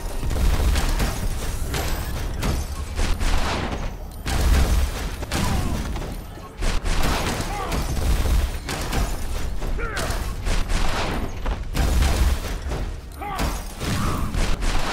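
Explosions boom and crackle again and again.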